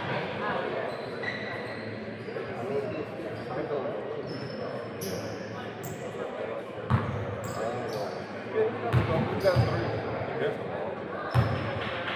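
Basketball players' sneakers squeak on a hardwood court.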